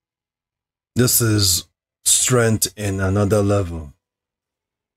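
A man speaks briefly, close to the microphone.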